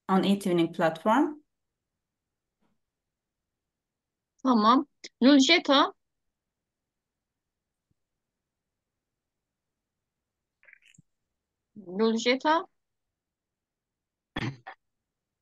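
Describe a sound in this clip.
A woman speaks in short bursts through an online call.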